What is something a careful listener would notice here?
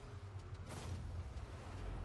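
A goal explosion bursts.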